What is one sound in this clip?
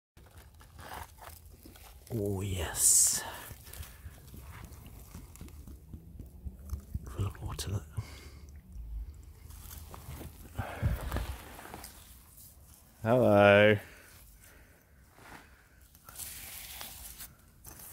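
A gloved hand scrapes and rustles through loose soil.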